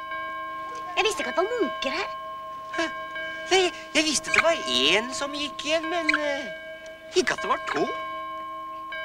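A man calls out excitedly close by.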